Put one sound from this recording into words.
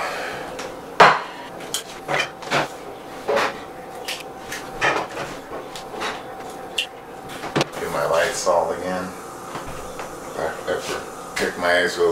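Utensils clink and clatter on dishes and a pan.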